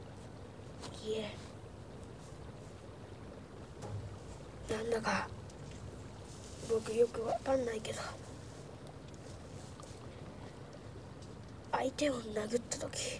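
A young boy speaks tearfully and haltingly, close by.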